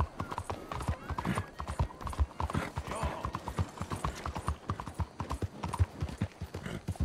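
Horse hooves pound steadily on a dirt road at a gallop.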